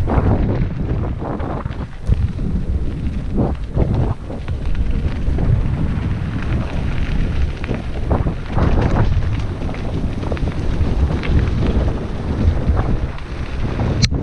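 Bicycle tyres rumble and crunch over a rough dirt trail.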